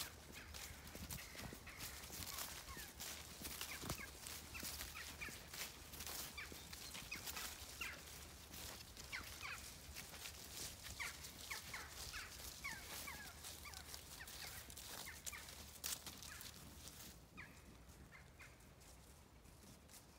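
Sheep trot softly across grass.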